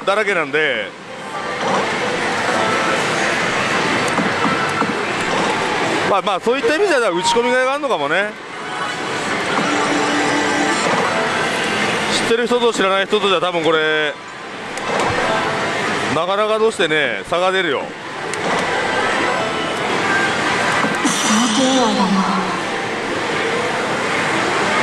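A slot machine plays loud electronic music and sound effects.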